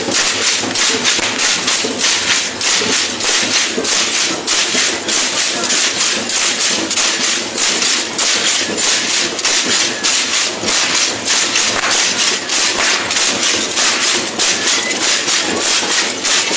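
Dancers' rattles shake in a steady, fast rhythm.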